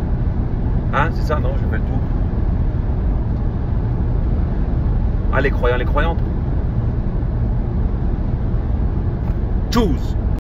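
A car engine and road noise rumble steadily from inside the car.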